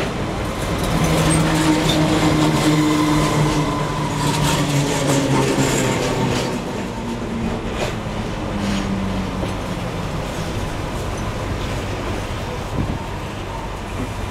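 A train rolls past close by, its wheels clattering and rumbling on the rails.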